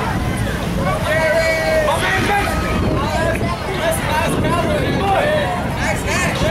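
Children and young people cheer and shout outdoors.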